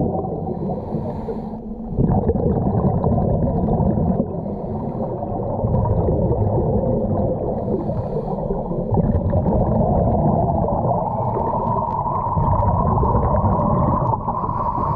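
Water churns and bubbles loudly, heard muffled from underwater.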